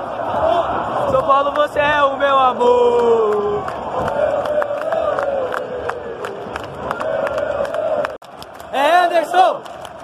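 A huge stadium crowd sings and chants loudly in unison, echoing around the stands.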